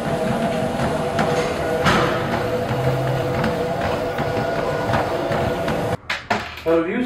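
Treadmill motors whir steadily.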